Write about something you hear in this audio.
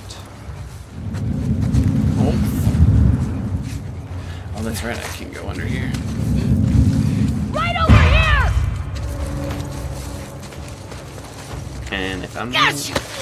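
Clothing rustles as a game character crawls through undergrowth.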